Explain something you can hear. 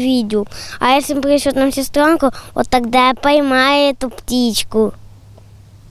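A young boy speaks into a microphone close up.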